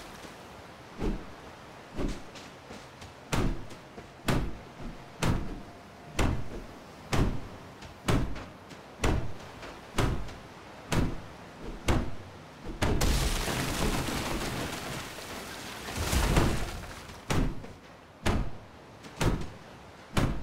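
An axe chops rhythmically into a tree trunk.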